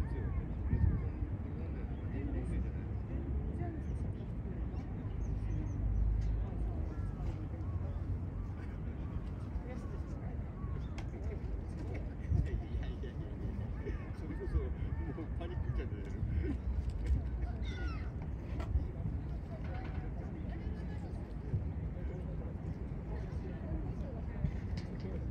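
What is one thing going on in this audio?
A wading bird splashes softly through shallow water.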